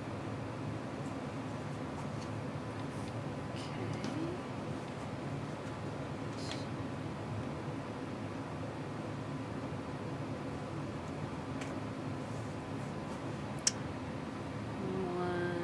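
Hands slide and fold pieces of cotton fabric across a cutting mat.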